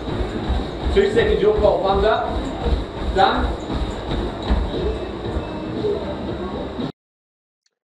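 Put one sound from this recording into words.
A treadmill belt whirs steadily.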